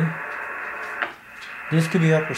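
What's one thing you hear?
A radio knob clicks as it is turned.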